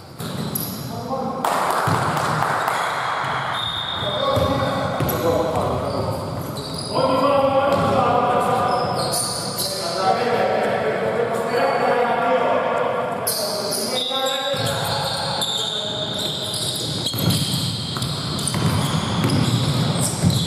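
Men call out to each other across an echoing hall.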